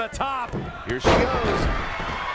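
A body slams hard onto a wrestling mat.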